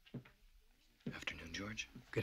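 An elderly man speaks softly.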